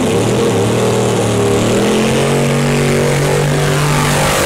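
Race car tyres spin and screech on the track.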